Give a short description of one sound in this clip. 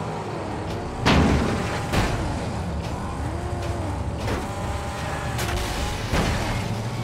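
Heavy metal crashes against metal several times.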